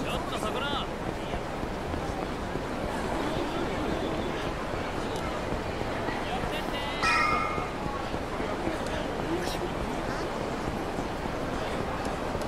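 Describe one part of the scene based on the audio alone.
Footsteps patter quickly on pavement.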